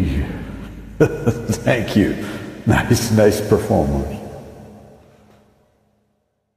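An elderly man talks warmly close to a microphone.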